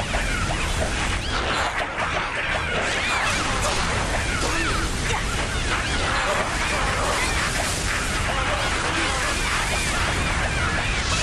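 Monsters screech and clash in a chaotic battle.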